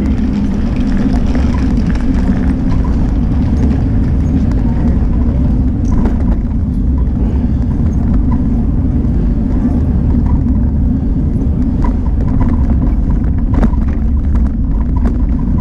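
Small hard wheels rumble steadily over pavement close by.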